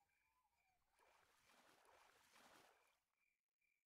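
A fish splashes in water.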